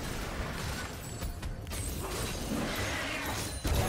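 Magic spells whoosh and crackle in a fight.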